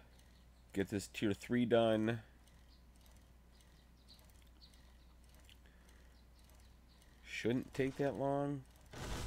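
A bicycle rolls along a paved road with a ticking chain.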